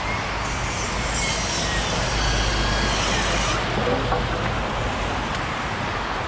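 Wooden boards knock together as a man handles them.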